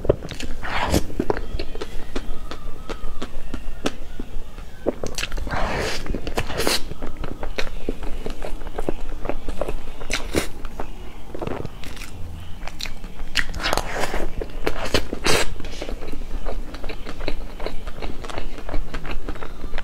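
A young woman chews soft cake close to a microphone, with wet smacking sounds.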